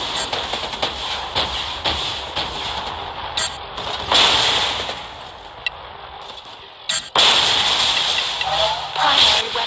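Laser cannons fire in quick, repeated bursts.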